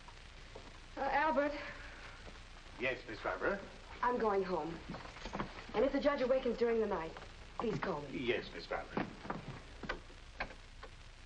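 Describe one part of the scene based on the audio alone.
An elderly man talks.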